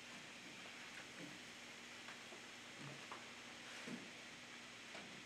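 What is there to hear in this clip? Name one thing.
Small objects knock softly on a table.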